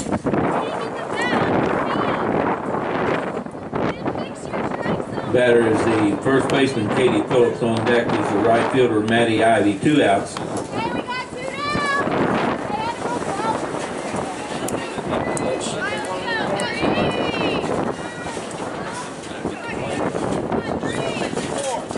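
Young women shout and cheer from across an open field.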